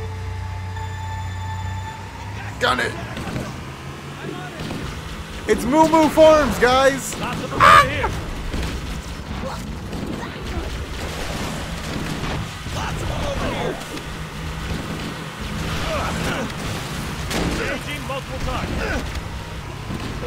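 Vehicle engines rumble and whine as they race.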